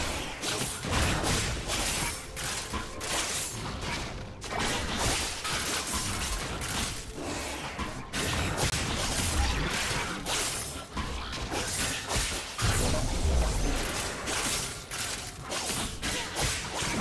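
Video game spell effects whoosh and crackle during a fast battle.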